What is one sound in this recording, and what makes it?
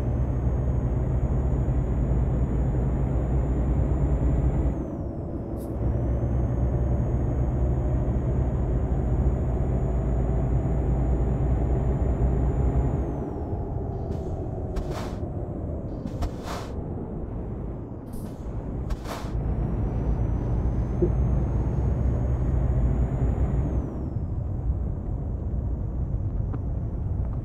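A truck engine rumbles steadily and changes pitch as the truck speeds up and slows down.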